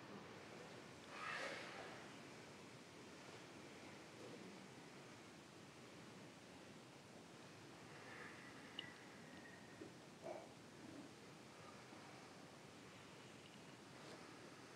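A man speaks calmly and slowly from a distance.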